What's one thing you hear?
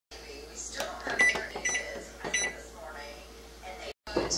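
Microwave buttons beep as they are pressed.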